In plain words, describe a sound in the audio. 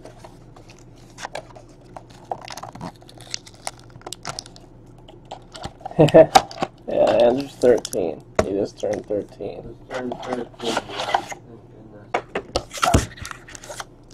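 Plastic wrapping crinkles.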